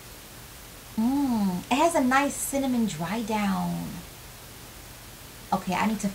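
A young woman speaks with animation close to the microphone.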